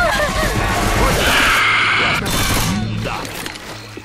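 A creature snarls and screeches loudly at close range.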